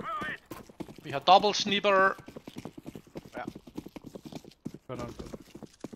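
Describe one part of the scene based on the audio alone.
Footsteps patter quickly on hard stone.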